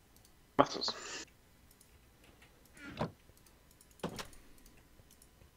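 Short soft clicks and pops of a game menu sound now and then.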